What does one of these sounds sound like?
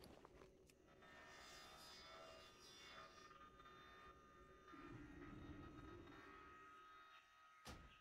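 Magic spells shimmer and chime in a game.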